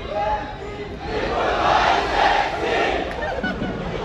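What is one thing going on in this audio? An audience cheers and shouts.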